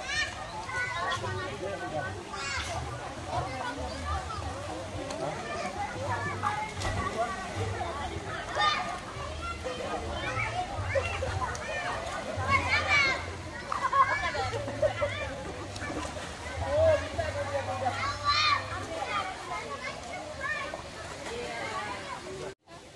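A crowd of children and adults chatter and shout outdoors around a pool.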